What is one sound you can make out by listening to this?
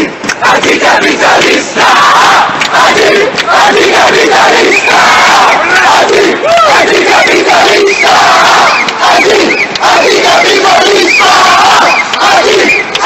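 Many people cheer and shout outdoors.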